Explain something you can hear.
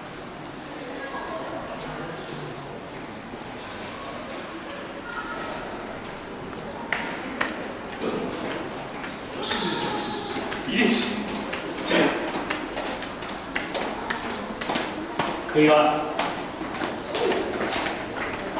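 Footsteps climb hard stairs, echoing in a tiled passage.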